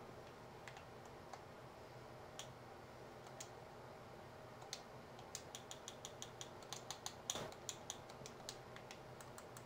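Menu clicks tick rapidly.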